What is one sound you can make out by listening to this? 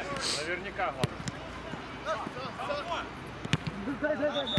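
A football thuds as a player kicks the ball.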